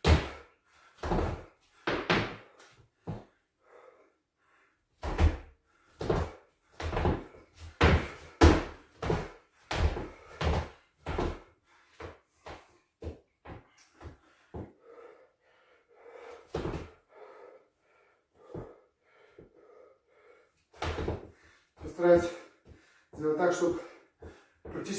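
Fists thump repeatedly against a wooden wall in an echoing room.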